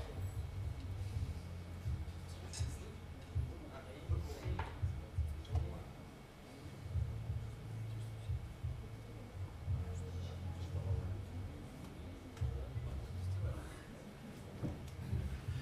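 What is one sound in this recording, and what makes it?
A piano plays softly.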